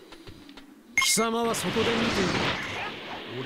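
An energy blast bursts loudly and roars with crackling.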